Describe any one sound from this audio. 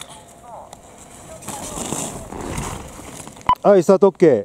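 Skis scrape and hiss across hard snow as a skier carves a turn close by.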